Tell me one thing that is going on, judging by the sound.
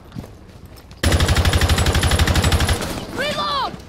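A rifle fires in a rapid automatic burst.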